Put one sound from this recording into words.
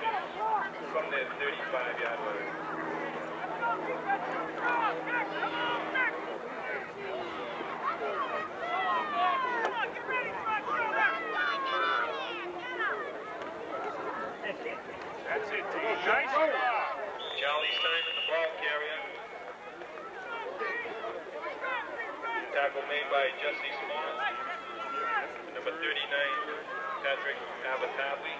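Young boys shout and chatter with excitement outdoors.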